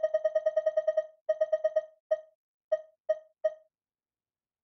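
Short electronic menu beeps tick rapidly, then slow down and stop.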